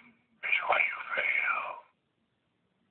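A short sound effect plays from a device speaker.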